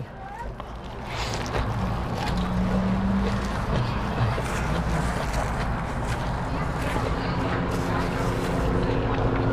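A woman bites and chews crunchy lettuce close by.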